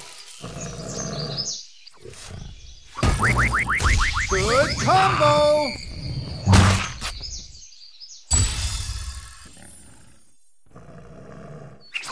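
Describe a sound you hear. Cartoonish fighting sounds thump and crash in bursts.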